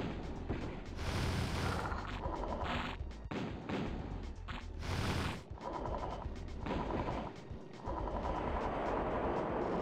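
Guns fire and shells burst in rapid, noisy bursts.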